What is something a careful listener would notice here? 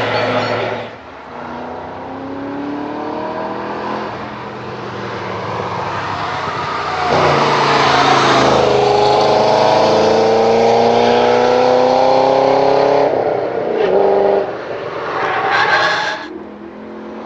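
A sports car's engine roars loudly as it accelerates past and fades.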